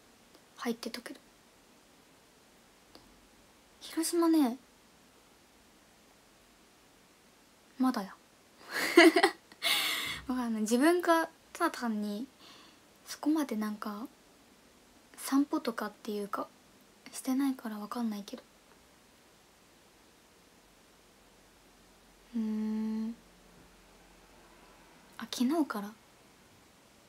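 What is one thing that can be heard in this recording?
A young woman talks calmly in short bursts, close to a microphone.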